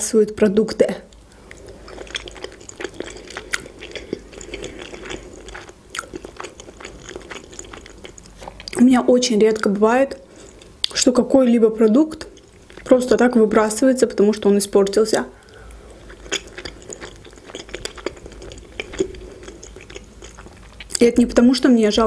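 A young woman chews food with soft, wet smacking sounds.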